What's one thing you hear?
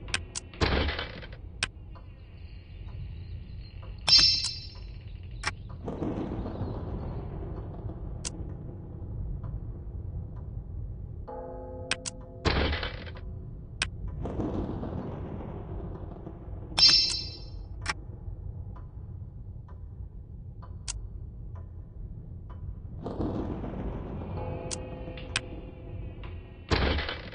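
Game menu clicks and item reward chimes sound repeatedly.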